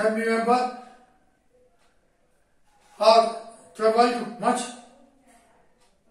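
An elderly man speaks slowly and deliberately through a close headset microphone.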